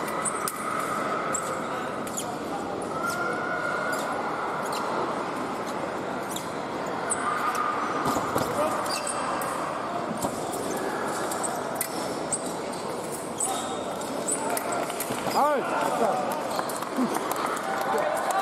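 Fencers' shoes squeak and tap on the piste.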